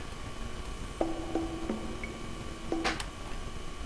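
Short electronic menu blips sound several times.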